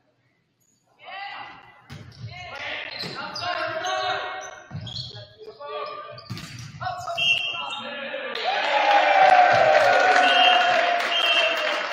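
Young men shout and call out in a large echoing hall.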